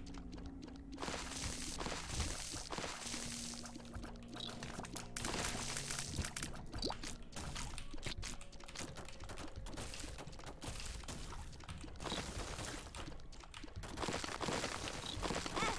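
Video game shots and bursts pop and crackle.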